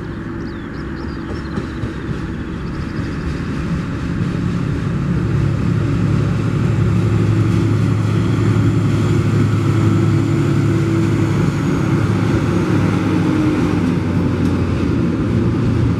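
Train wheels clatter and rumble on the rails.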